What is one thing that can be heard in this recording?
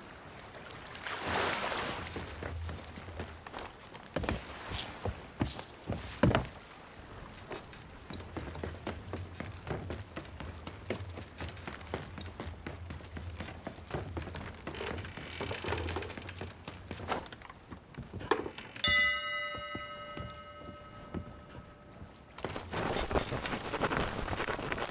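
Waves wash gently against a hull outdoors.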